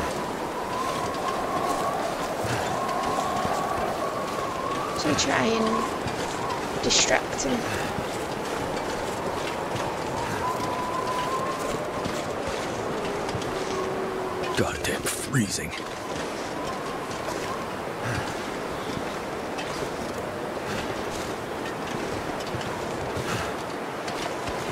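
Wind howls steadily outdoors.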